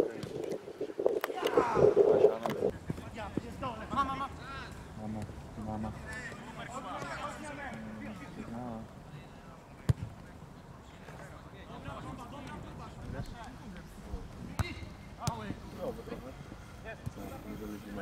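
Men shout and call out outdoors across an open field.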